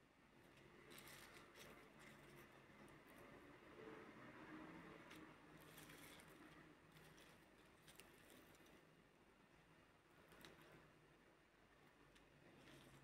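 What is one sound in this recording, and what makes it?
Leaves rustle and crackle softly as a hand sorts through them.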